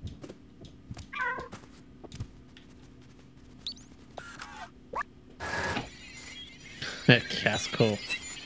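A man speaks into a microphone with animation.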